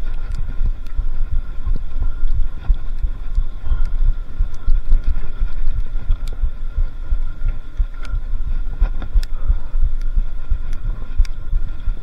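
A bicycle's frame and chain clatter over bumps.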